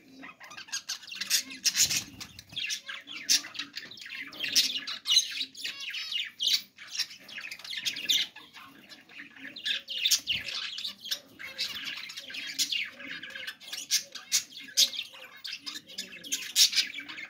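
Budgerigars chirp and chatter busily close by.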